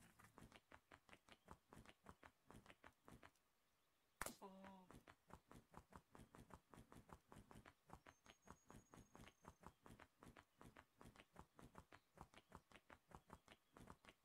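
Quick footsteps run steadily on hard pavement.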